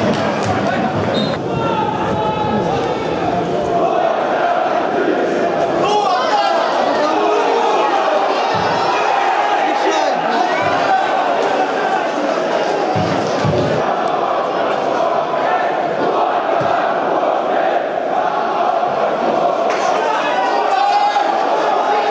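A crowd of spectators chants and cheers in an open stadium.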